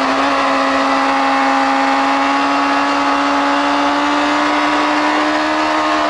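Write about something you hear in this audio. A motorcycle engine screams at high, steady revs.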